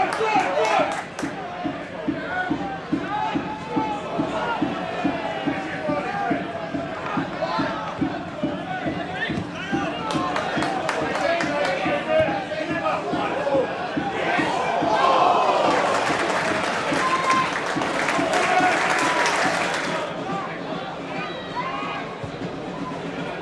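A large crowd chants and shouts outdoors.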